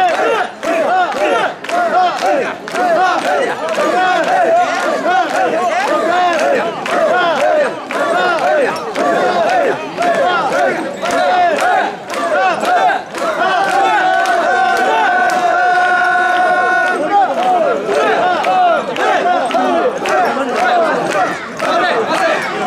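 Men clap their hands in time.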